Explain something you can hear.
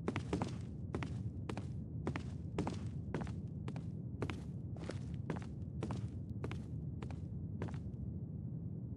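Footsteps thud across a wooden floor at a steady walking pace and stop.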